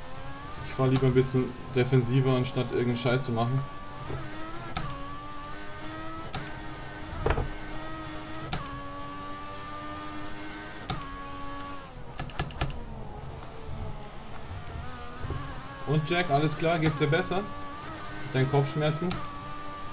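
A racing car engine whines, rising and falling in pitch as it shifts gears.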